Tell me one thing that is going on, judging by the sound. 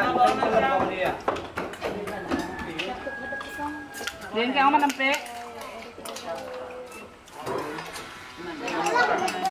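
Several women and children chatter and talk nearby.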